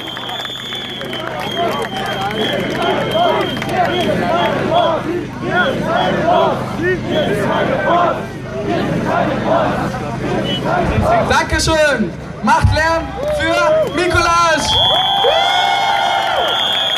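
A man speaks through a loudspeaker to a crowd outdoors, echoing off buildings.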